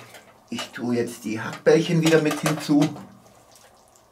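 Metal tongs clink against a metal tray.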